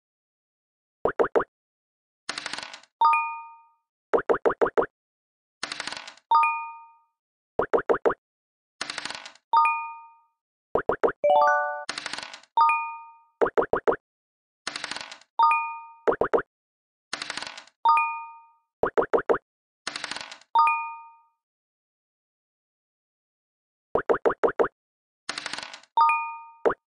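Game pieces hop across the board with quick bright ticks.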